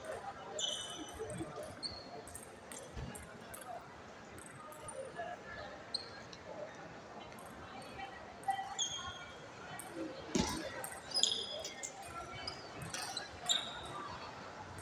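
Shoes squeak sharply on a smooth floor.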